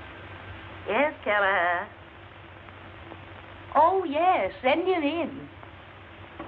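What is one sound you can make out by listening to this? A woman speaks into a telephone.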